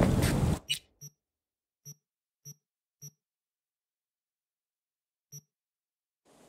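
Short electronic beeps sound as a menu is browsed.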